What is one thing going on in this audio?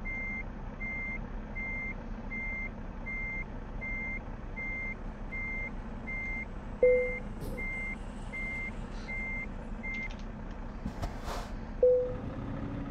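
A diesel truck engine idles.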